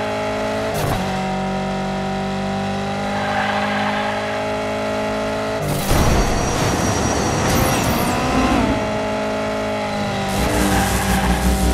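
A small race car's engine whines steadily as it speeds along a track.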